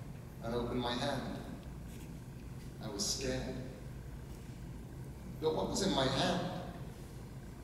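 A man reads aloud calmly through a microphone in a reverberant hall.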